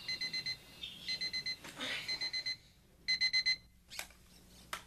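An alarm clock beeps rapidly.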